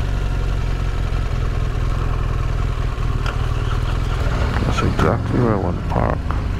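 A motorcycle engine rumbles low and steady.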